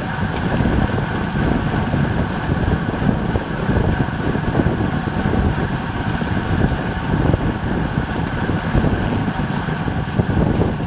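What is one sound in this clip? Wind rushes loudly past at speed outdoors.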